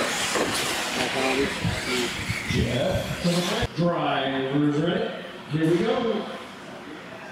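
A man speaks with animation over a loudspeaker.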